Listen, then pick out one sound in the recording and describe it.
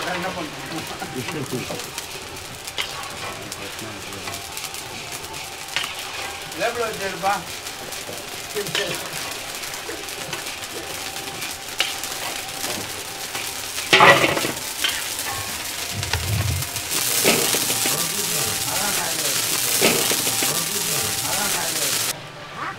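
A metal ladle scrapes and clinks against a steel pot.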